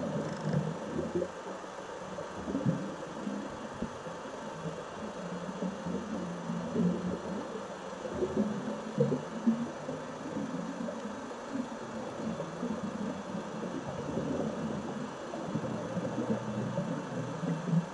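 A scuba diver breathes through a regulator underwater, with bubbles gurgling out in bursts.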